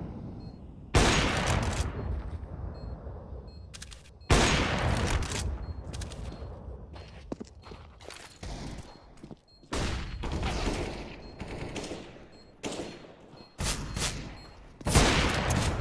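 A rifle fires loud single shots, each ringing out briefly.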